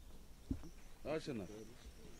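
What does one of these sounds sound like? A man speaks outdoors.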